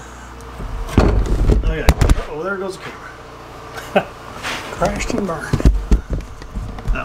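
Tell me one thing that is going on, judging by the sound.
Knocks and thumps sound against a sink.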